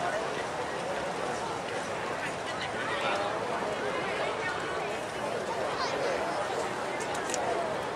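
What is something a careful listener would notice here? A wind band plays outdoors.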